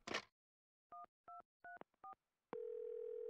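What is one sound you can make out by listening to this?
A phone's buttons beep as they are pressed.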